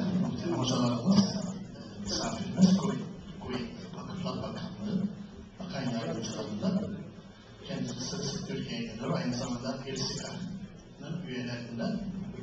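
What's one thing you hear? An older man speaks steadily into a microphone through a loudspeaker in an echoing room.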